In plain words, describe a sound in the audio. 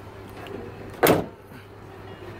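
A pickup tailgate shuts with a thud.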